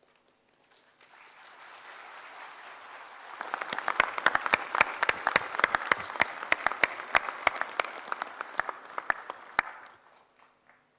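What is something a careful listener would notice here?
A large crowd applauds in a big hall.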